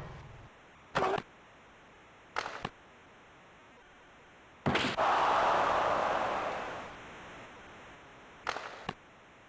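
A hockey stick sharply smacks a puck several times.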